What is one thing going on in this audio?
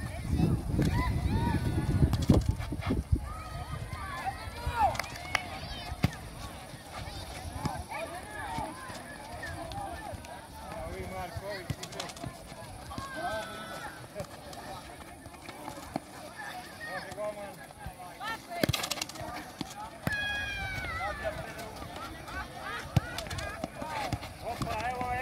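Players call out to each other across the court.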